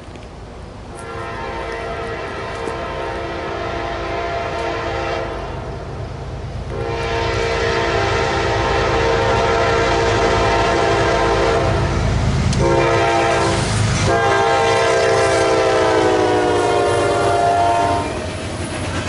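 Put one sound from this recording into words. A locomotive horn blares repeatedly as a train approaches, dropping in pitch as it passes.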